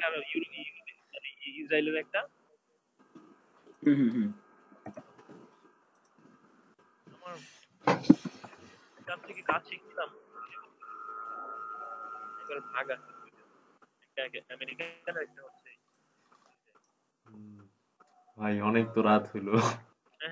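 Young men talk by turns over an online call.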